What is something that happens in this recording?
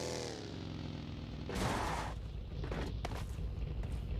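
A buggy engine hums and revs.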